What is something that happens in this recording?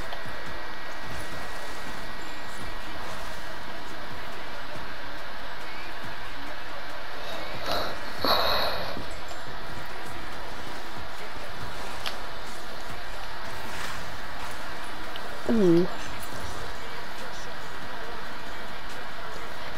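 A snowboard carves and hisses steadily over snow.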